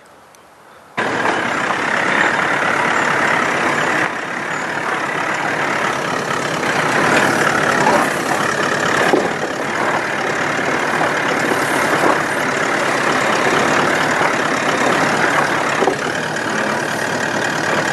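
A four-wheel-drive engine rumbles as it crawls slowly over rocks.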